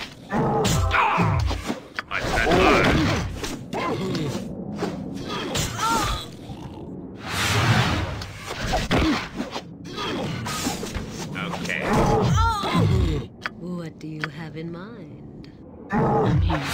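Weapons clash and thud repeatedly in a fight.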